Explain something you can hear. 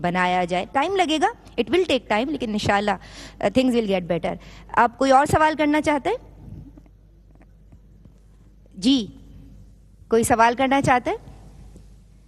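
A young woman recites in a melodic, sung voice through a microphone, pausing between phrases.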